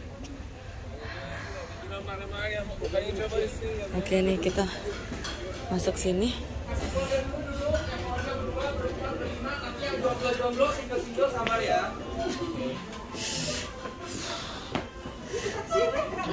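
Many people chatter in a busy room.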